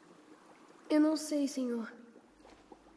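A boy speaks calmly.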